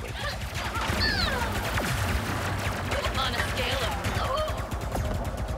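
Electronic zaps and whines sweep up and down.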